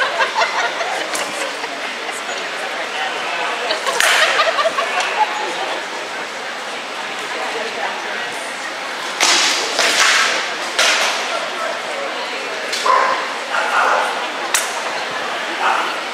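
Wooden swords knock against shields.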